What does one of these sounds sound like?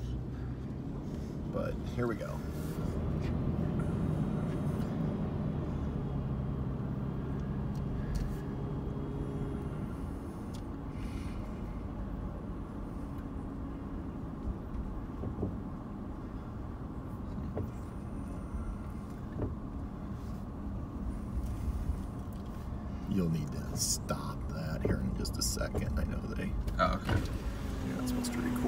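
A car engine hums and tyres roll steadily on pavement.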